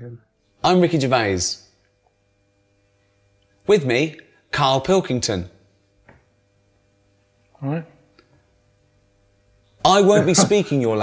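A middle-aged man speaks calmly through a microphone, with short pauses.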